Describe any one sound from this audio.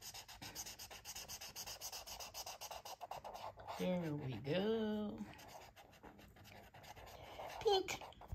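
A marker scratches and squeaks across paper in quick strokes.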